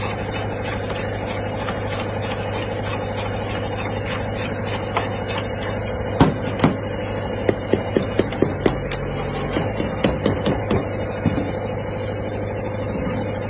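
A truck engine hums steadily nearby.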